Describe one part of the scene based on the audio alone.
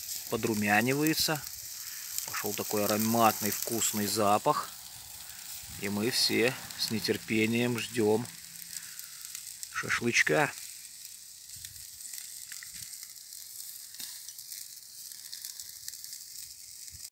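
Meat sizzles softly over glowing coals.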